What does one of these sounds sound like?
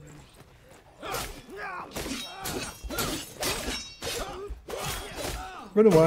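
Blades clash and strike in a close fight.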